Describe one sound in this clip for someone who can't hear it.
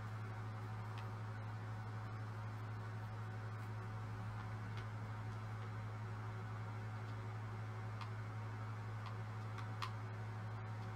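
Short soft clicks sound now and then as buttons are pressed.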